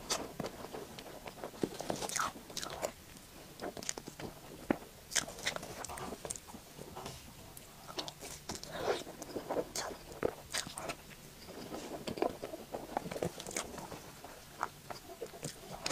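A metal fork scrapes and taps against a plate.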